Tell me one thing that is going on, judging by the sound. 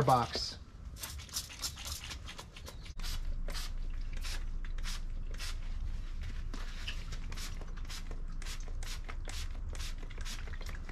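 A spray bottle hisses in quick repeated squirts.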